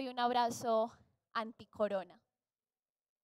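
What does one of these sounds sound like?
A young woman speaks brightly and clearly, close by.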